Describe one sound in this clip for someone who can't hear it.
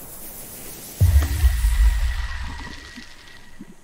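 Something splashes heavily into water.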